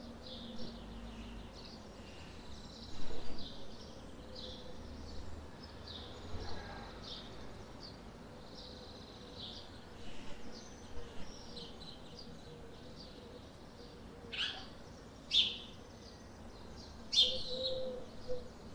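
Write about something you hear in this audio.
Birds chirp and shriek overhead, with a few loud, sharp calls passing close by.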